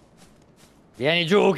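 A man shouts loudly into a close microphone.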